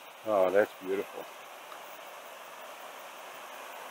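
A shallow stream rushes steadily over rocks.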